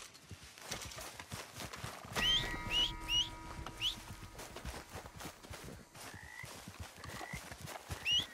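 Footsteps run quickly through tall grass.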